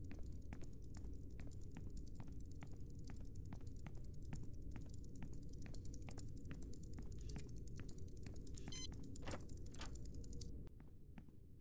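Footsteps tap at a steady pace.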